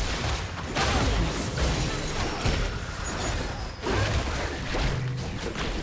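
Spell effects and attack sounds clash rapidly in a game battle.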